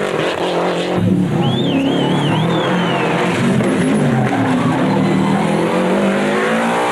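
A second rally car engine roars, climbing through the gears.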